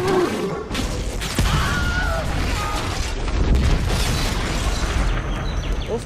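A large fire roars loudly.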